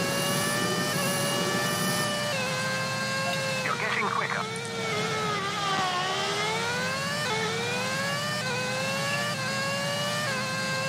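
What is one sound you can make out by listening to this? A racing car engine whines loudly, its pitch rising and dropping as it shifts gears.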